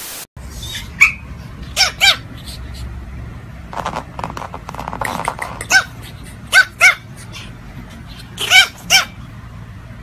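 A small dog yaps in short, high barks.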